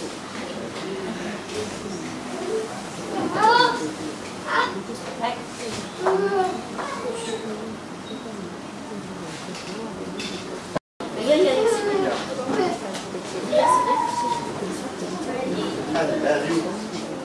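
Adults murmur quietly nearby.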